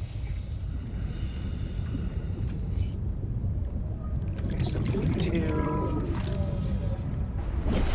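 Water rumbles and churns steadily underwater.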